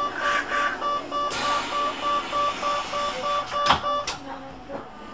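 A door warning chime beeps rapidly.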